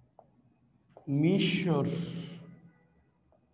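A man speaks loudly and briefly.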